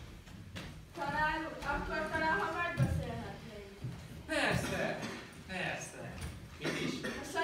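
A young woman sings through a microphone in a large echoing hall.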